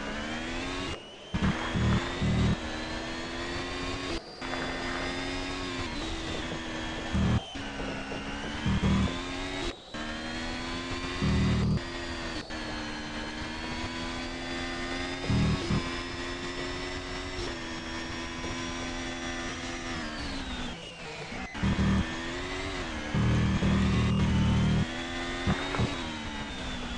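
A racing car engine screams steadily, its pitch rising and falling with gear changes.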